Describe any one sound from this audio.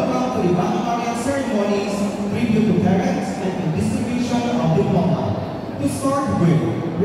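A crowd of men and women talks nearby in a large, echoing hall.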